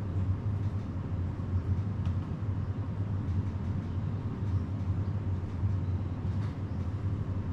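Keys click softly on a laptop keyboard.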